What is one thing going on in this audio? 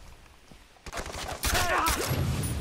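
A pistol fires a loud shot.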